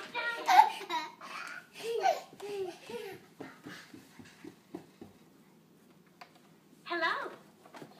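Plastic toy pieces clack as a child handles them.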